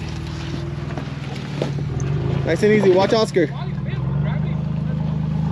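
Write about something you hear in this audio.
A vehicle engine idles and revs low and steady close by.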